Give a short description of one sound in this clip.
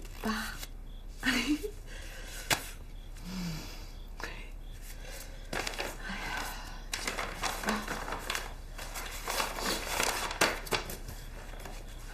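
Paper banknotes rustle as they are counted by hand.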